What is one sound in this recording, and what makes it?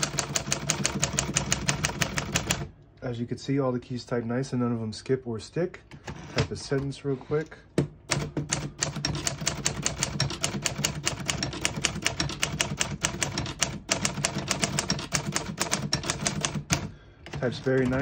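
A manual typewriter clatters with rapid, sharp key strikes.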